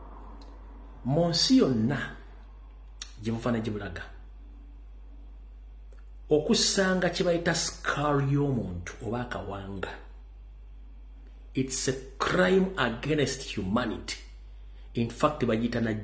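A man speaks emotionally in bursts close to a microphone, with pauses between phrases.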